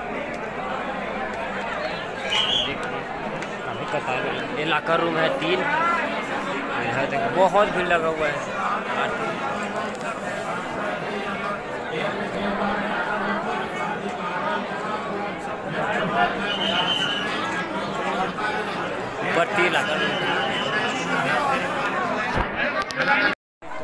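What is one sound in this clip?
A large crowd murmurs and chatters all around.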